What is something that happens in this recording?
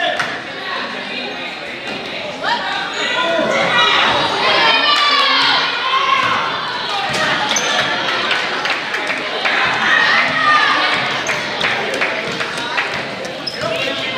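A basketball bounces on the court.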